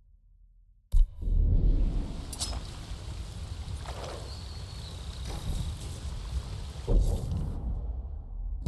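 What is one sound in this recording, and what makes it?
Water of a shallow river flows and splashes over stones.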